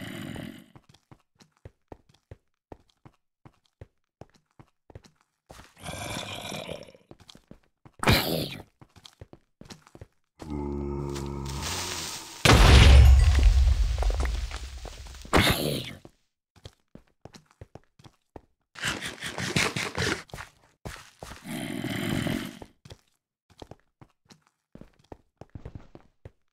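Footsteps crunch steadily over snow.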